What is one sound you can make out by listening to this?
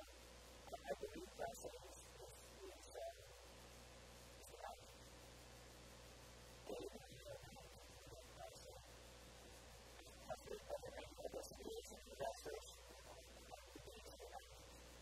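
A man speaks with animation through a clip-on microphone, pausing often.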